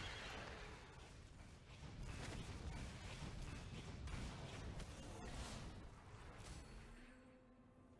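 Magic blasts and clashing strikes crash in a busy fight.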